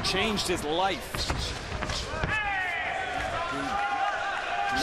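Gloves thud as punches land.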